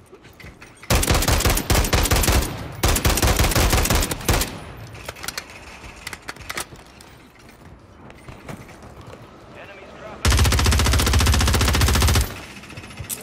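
A rifle fires in rapid bursts nearby.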